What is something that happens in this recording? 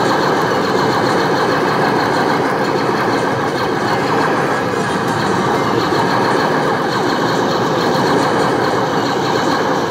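Laser blasts fire rapidly from an arcade game.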